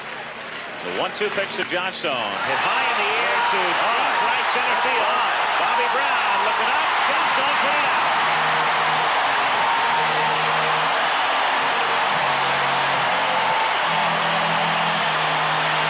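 A large stadium crowd roars and cheers loudly.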